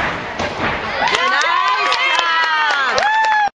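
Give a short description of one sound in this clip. Young girls cheer and shriek loudly in a crowd.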